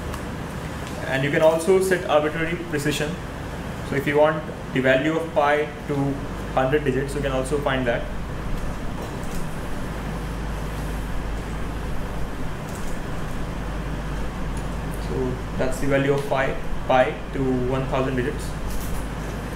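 A man speaks calmly through a microphone in a large room, in short bursts with pauses.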